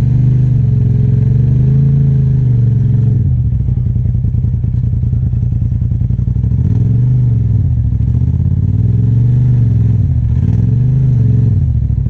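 A side-by-side UTV engine revs up and down as it climbs a rock ledge.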